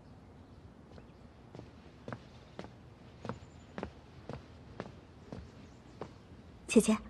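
Footsteps tap slowly and evenly across a wooden floor.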